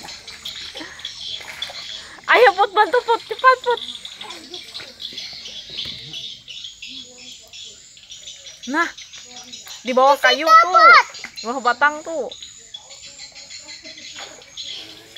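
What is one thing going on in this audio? Water splashes as children wade through a muddy pond.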